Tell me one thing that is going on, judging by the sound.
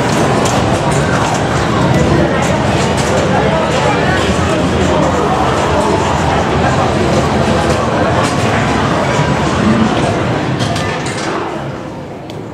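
Arcade machines play loud electronic sounds and music.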